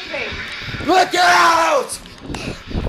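A young person speaks loudly and close by in a high voice.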